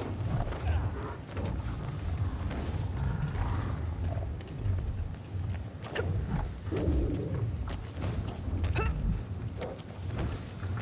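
Heavy blows strike creatures with sharp thuds and crunches.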